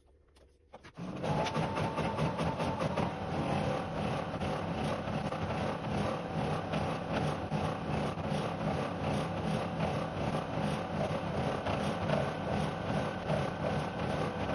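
An embroidery machine stitches with a fast, steady rattling hum.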